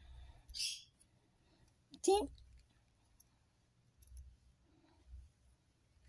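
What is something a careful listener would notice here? A hand strokes a cat's fur with a soft rustle.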